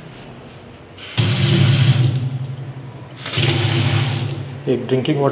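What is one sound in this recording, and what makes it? Water gushes from a tap and splashes into a metal sink.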